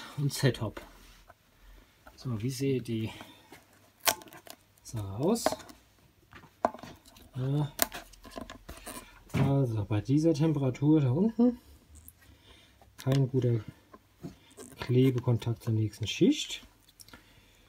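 A stiff plastic piece crackles and clicks as fingers squeeze it.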